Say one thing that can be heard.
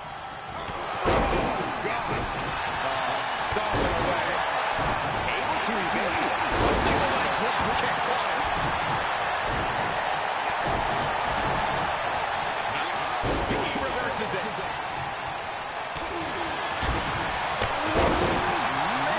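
Heavy thuds of bodies slam onto a wrestling ring mat.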